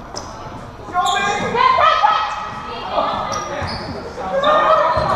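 Young men shout and call out to each other during play.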